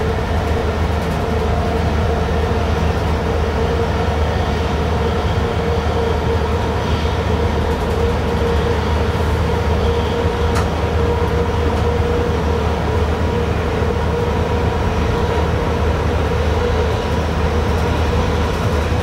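A train rumbles steadily along the rails at speed.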